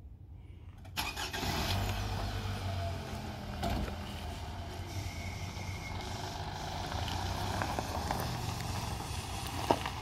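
A car engine idles and hums low.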